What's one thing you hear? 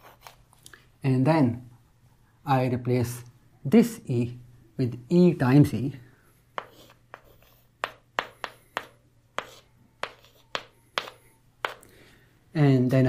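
A man speaks calmly and clearly, close by.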